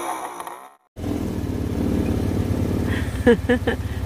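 A motor scooter engine idles with a steady low hum.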